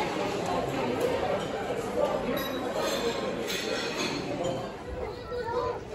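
Indistinct voices of men and women chatter nearby.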